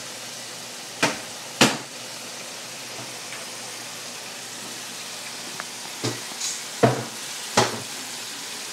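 A plastic container knocks and clatters.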